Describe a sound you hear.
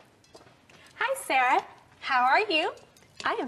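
Another young woman greets in a friendly voice.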